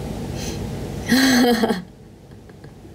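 A young woman laughs brightly.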